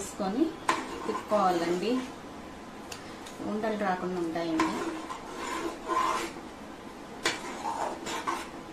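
A metal spoon clinks against a metal pot.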